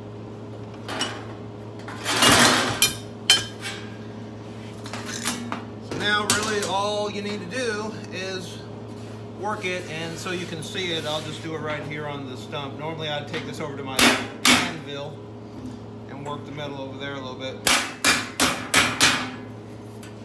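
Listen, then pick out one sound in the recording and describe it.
A hammer strikes sheet metal with sharp, ringing blows.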